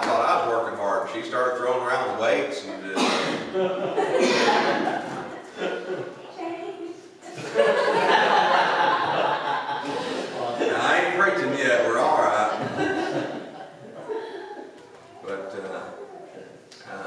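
A middle-aged man speaks steadily through a microphone in a large, echoing hall.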